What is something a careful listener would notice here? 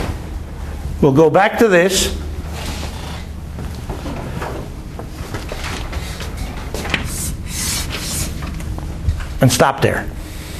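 An elderly man speaks with animation.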